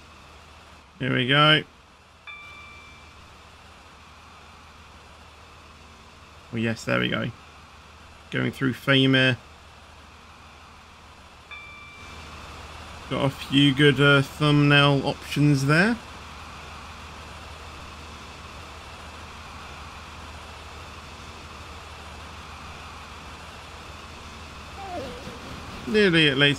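A train horn sounds in loud, repeated blasts.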